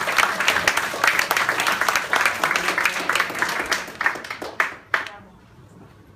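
An audience applauds in a room and the clapping dies away.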